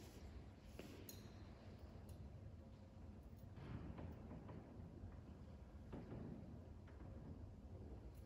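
A censer's chains clink softly as it swings in an echoing room.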